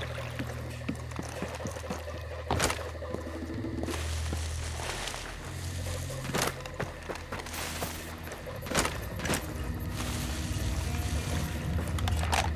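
Footsteps crunch steadily on the ground.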